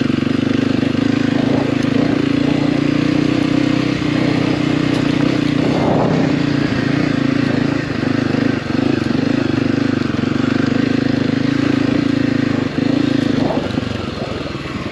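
Tyres crunch over dry dirt and grass.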